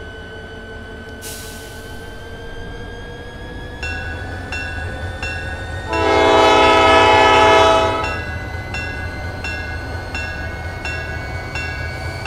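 A diesel locomotive engine hums and rises in pitch as the train speeds up.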